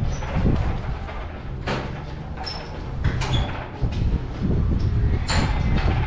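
A glass door rattles and swings open.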